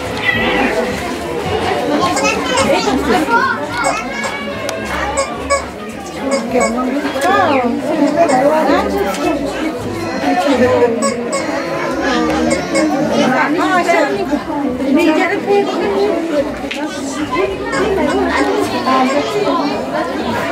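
Several women chatter and call out to each other close by.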